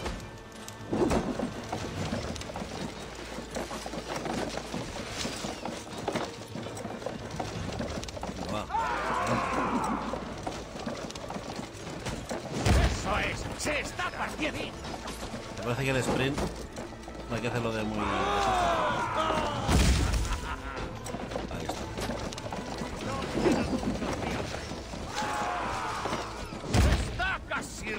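Heavy thuds strike a wooden gate.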